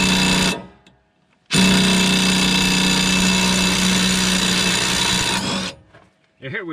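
A cordless impact wrench whirs loudly in short bursts, loosening a bolt.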